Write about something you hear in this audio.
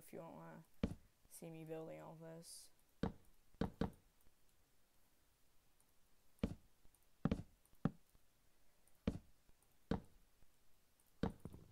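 Wooden blocks knock sharply as they are placed, one after another.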